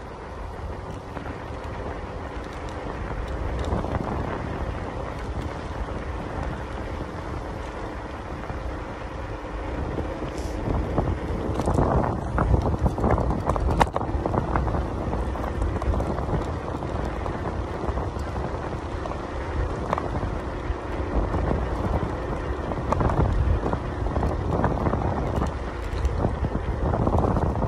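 Strong wind gusts roar loudly outdoors, buffeting close by.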